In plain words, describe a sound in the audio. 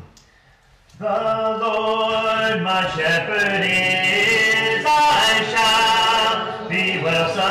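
A middle-aged man sings through a microphone.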